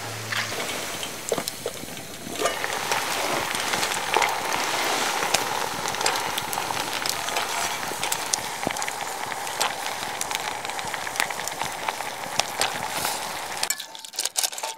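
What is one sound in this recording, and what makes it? Water boils and bubbles in a pot.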